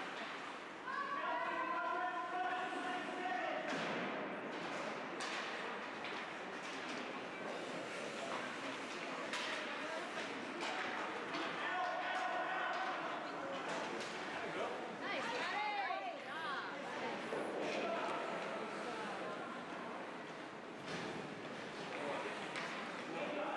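Spectators cheer and shout in an echoing rink.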